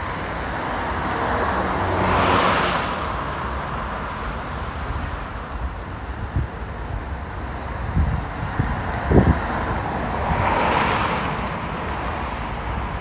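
A car drives past close by with a rising and fading whoosh.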